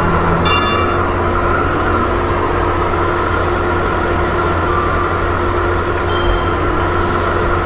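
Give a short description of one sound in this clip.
A high chime rings out.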